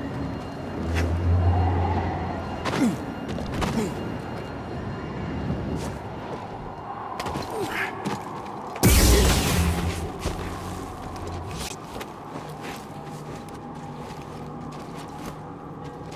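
Footsteps crunch on loose rocks.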